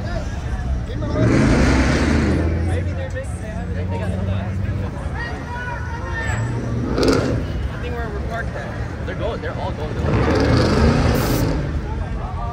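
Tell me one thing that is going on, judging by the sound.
A car engine revs loudly as it drives past.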